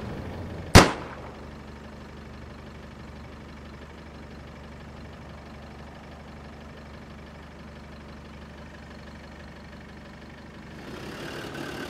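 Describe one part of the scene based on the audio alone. A vehicle engine rumbles steadily.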